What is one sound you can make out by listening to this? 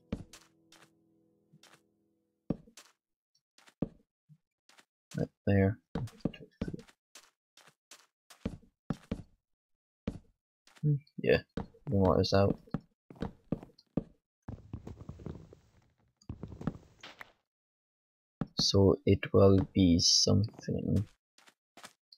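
Wooden blocks thud softly as they are set down one after another.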